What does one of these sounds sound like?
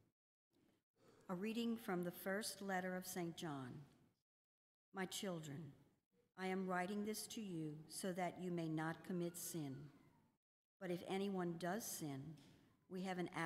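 An elderly woman reads aloud calmly into a microphone in a large echoing hall.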